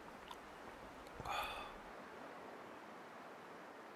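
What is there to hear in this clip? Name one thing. Water gulps as it is drunk from a jug.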